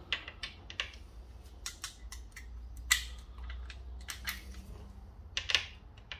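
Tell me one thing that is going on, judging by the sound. Metal sockets clink and rattle on a metal rail.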